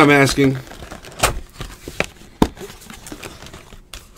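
A cardboard box lid slides open.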